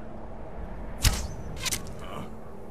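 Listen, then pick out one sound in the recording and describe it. An arrow twangs off a bowstring.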